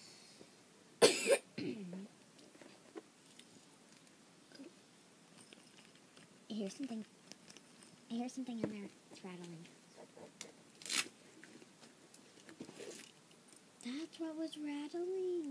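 A young girl talks and sings close by, in bursts, with animation.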